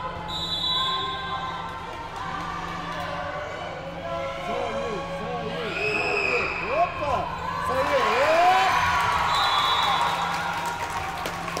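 Spectators murmur and cheer in the hall.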